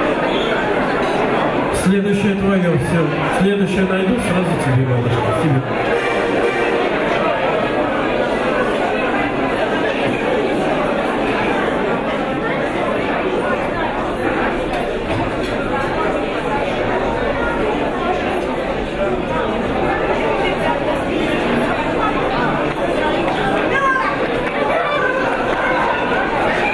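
A crowd chatters loudly throughout in a large room.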